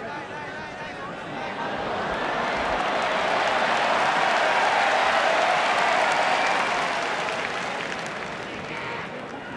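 A crowd cheers and roars in a large hall.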